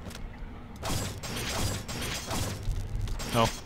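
A heavy gun fires a rapid burst.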